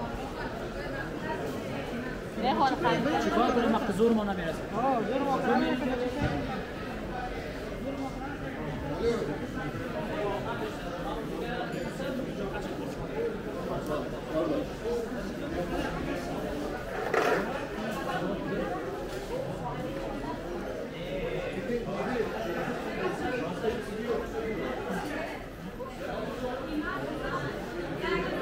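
A crowd of people chatters all around in a large echoing indoor hall.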